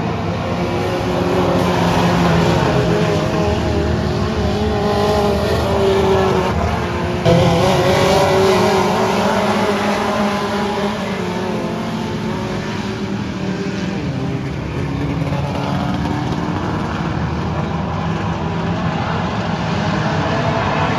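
Race car engines roar and whine as cars circle a dirt track outdoors.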